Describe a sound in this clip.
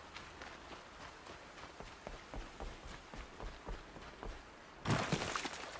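Footsteps run quickly over wooden planks.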